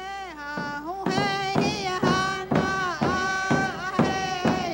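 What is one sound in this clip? A hand drum beats steadily.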